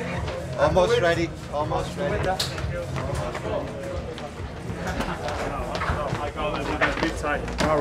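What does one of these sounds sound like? Several young men talk and chatter nearby.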